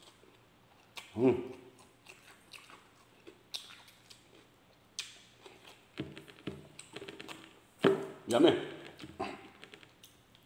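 A man slurps and smacks his lips loudly.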